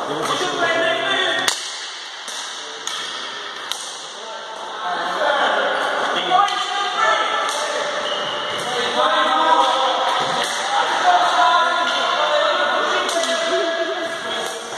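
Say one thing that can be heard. Sticks clack against a ball and against each other in a large echoing hall.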